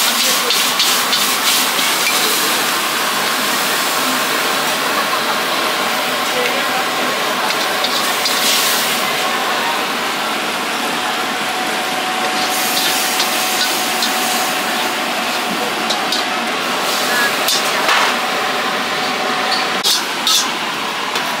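A gas burner roars.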